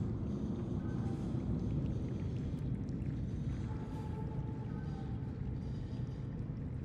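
A low electric hum drones steadily.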